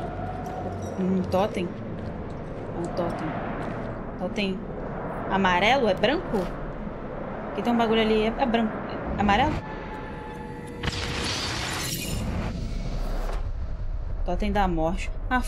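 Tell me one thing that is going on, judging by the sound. A young woman talks casually into a headset microphone.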